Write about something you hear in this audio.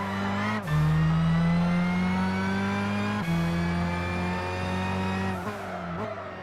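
A racing car engine roars loudly, climbing in pitch through the gears.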